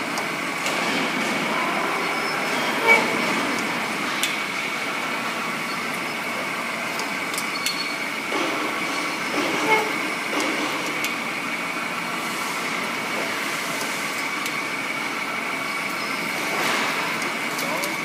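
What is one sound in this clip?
Metal shavings clink and tinkle as they fall.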